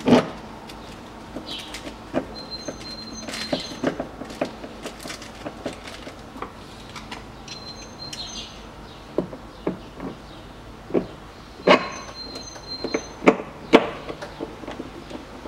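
Plastic clips click and snap as a car door panel is pried loose.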